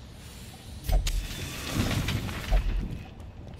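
Paper flares up and burns with a soft whoosh.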